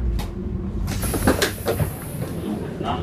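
Brakes squeal briefly as the train slows.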